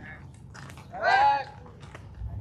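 A man shouts a short call loudly nearby.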